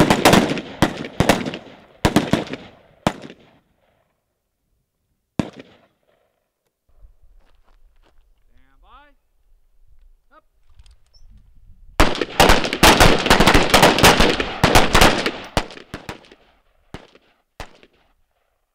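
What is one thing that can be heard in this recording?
Rifle shots crack in quick bursts outdoors, echoing off a hillside.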